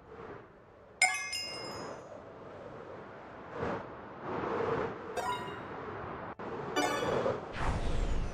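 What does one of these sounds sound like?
A bright chime rings out several times.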